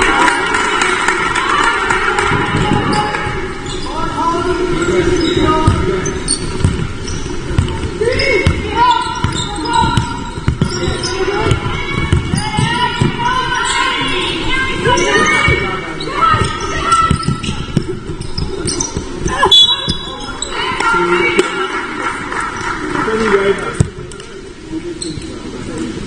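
Spectators shout and cheer.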